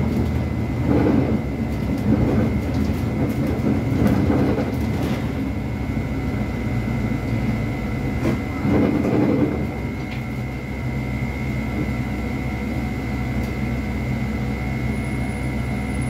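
A bus rumbles and rattles as it drives along a road.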